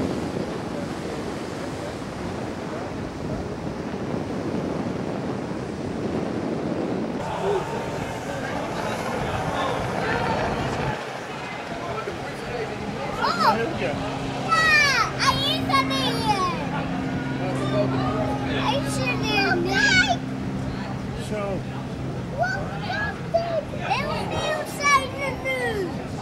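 Waves splash and churn around the speeding boats.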